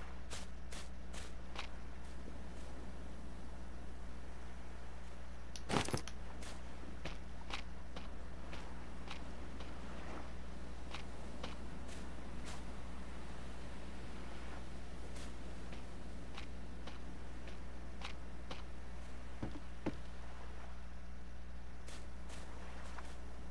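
Footsteps crunch through grass at a walking pace.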